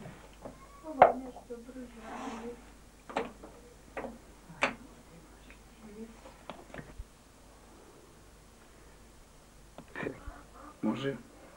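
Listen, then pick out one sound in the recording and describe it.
A wooden spinning machine clicks and knocks as it is worked by hand.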